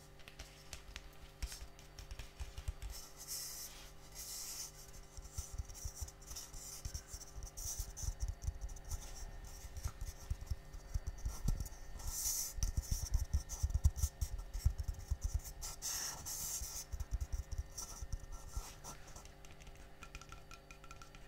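A dish clinks against a metal sink.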